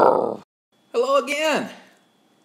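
A middle-aged man shouts with animation close to a microphone.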